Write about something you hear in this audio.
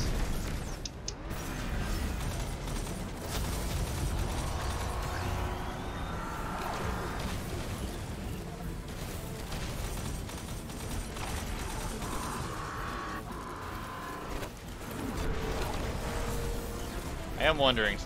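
Gunfire and energy blasts crackle and boom in a video game battle.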